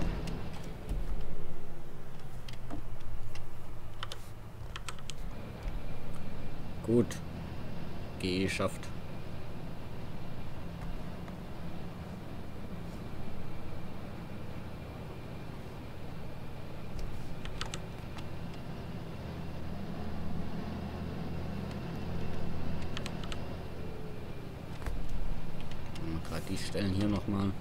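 A tractor engine hums low and steady from inside the cab.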